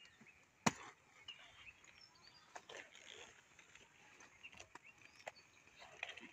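A knife chops through cabbage stalks.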